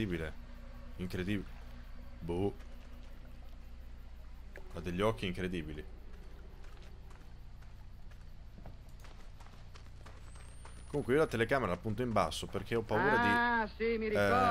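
A young man talks into a close microphone, in short bursts.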